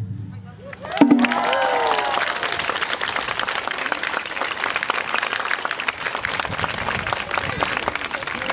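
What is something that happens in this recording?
A crowd claps and cheers after the drumming.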